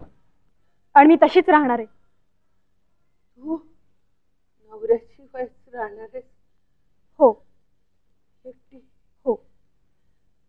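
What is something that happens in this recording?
A middle-aged woman speaks in an anxious, startled voice close by.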